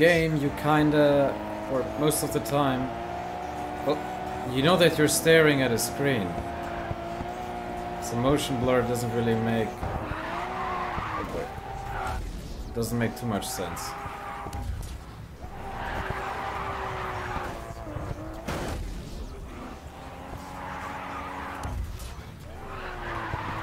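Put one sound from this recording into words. A racing car engine roars at high speed, its pitch rising and falling with the gears.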